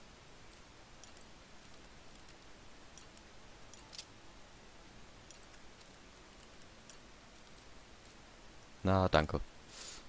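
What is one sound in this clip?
Small metal lock pins click softly, one after another.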